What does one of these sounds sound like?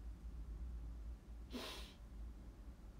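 A young woman sniffs.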